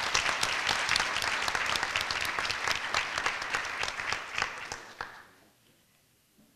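An audience claps loudly in a large hall, then the applause fades out.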